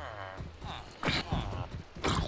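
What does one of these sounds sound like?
A creature grunts in pain as it is struck.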